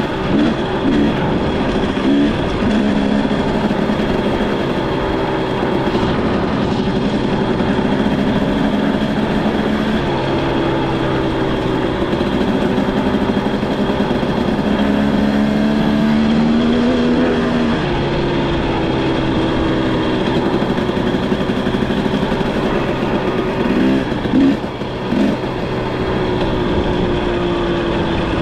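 An engine hums steadily and shifts in pitch.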